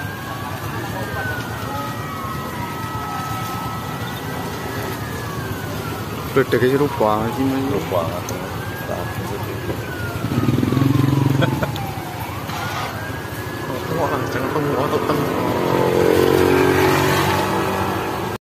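A large fire roars and rumbles in the distance.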